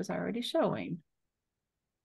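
A woman speaks briefly into a close microphone, then falls silent.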